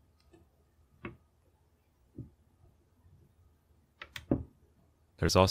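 A metal rifle hammer clicks as it is cocked.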